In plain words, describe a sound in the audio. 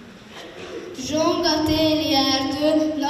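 A young girl sings into a microphone.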